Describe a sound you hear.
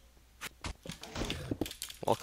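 Sword blows land on a creature in quick succession.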